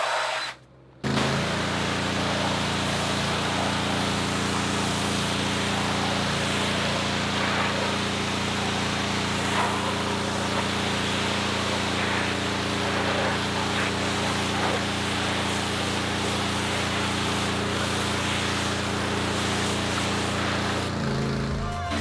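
A pressure washer motor drones steadily.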